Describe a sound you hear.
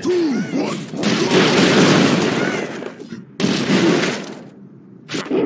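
Video game explosions boom and rumble loudly.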